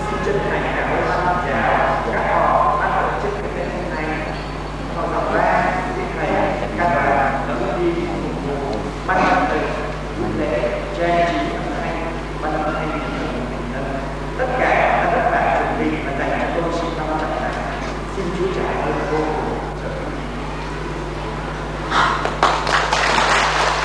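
A young man speaks calmly through a microphone in an echoing hall.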